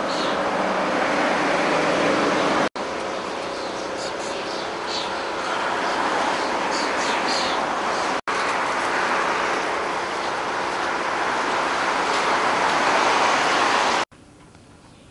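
Floodwater rushes and swirls steadily.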